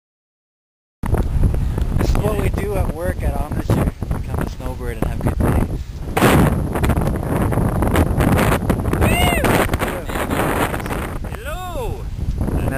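A man speaks cheerfully close by, outdoors in wind.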